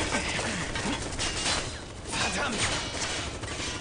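A heavy sword clangs against metal with sharp ringing hits.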